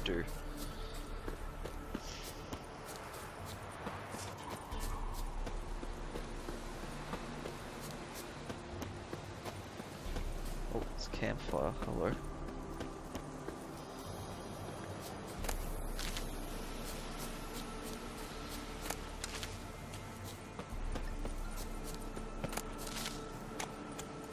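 Footsteps run on a dirt path.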